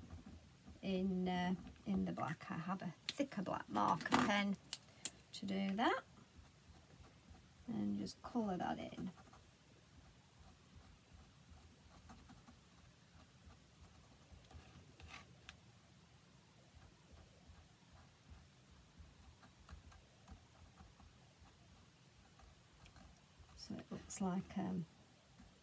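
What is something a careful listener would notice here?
A marker pen scratches lightly on card.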